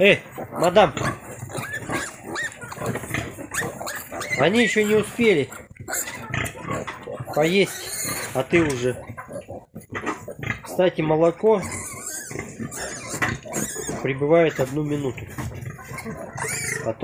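Newborn piglets squeal in high, wavering cries.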